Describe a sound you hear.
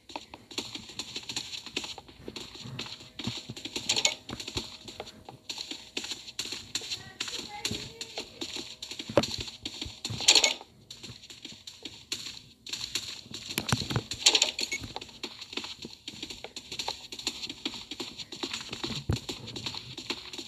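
Quick footsteps patter on a wooden floor.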